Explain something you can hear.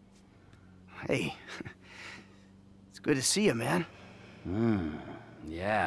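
A man speaks warmly and calmly close by.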